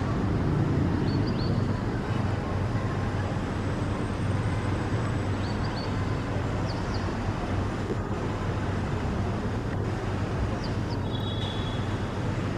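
A small bird chirps softly now and then.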